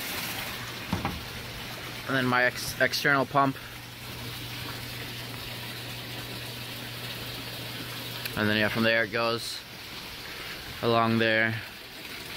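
A pump motor hums steadily.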